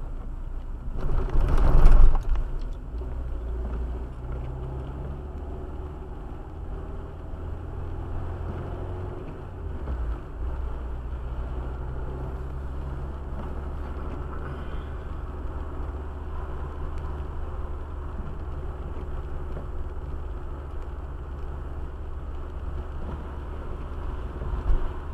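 A windscreen wiper sweeps across the glass with a squeak.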